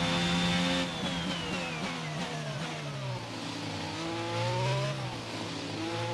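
A racing car engine whines loudly, dropping in pitch as the car slows into a bend, then rising again as it speeds up.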